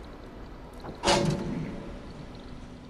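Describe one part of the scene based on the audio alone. A metal bucket clanks and swings on a chain.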